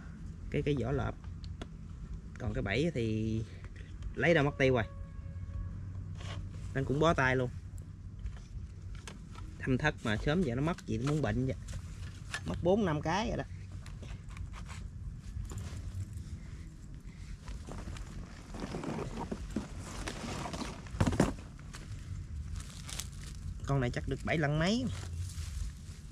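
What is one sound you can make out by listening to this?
A young man talks calmly, close by, in short bursts.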